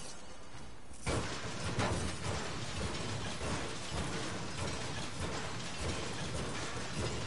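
A pickaxe smashes through wooden planks.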